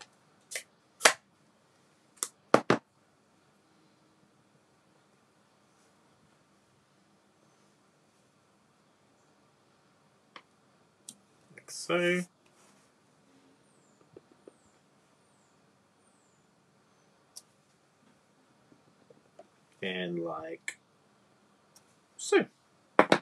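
A stamp block taps and knocks on a table.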